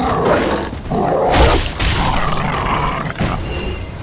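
A sword strikes flesh with heavy blows.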